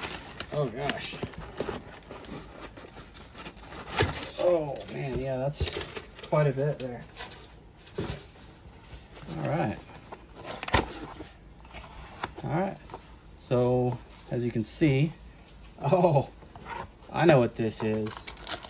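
A cardboard box scrapes and thumps as hands handle it on a table.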